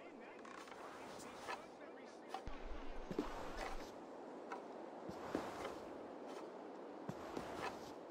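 Soft footsteps scuff on stone.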